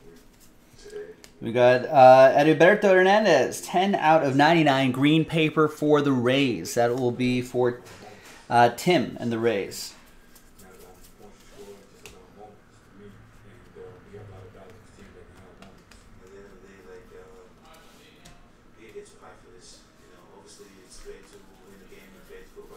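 Trading cards flick and slide against each other as they are sorted.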